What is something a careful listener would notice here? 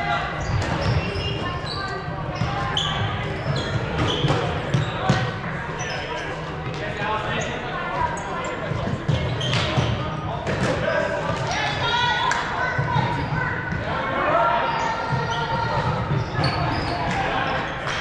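Young people shout and call out across a large echoing gym.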